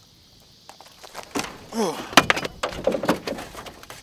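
Water splashes as a fish is tossed back.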